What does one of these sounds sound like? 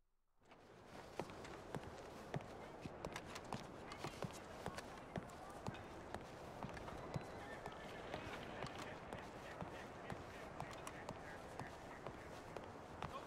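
Footsteps tread softly across a floor.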